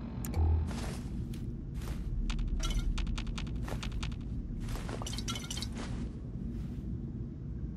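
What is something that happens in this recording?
Footsteps scuff along a hard floor.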